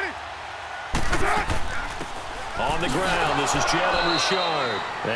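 Football players collide in a tackle.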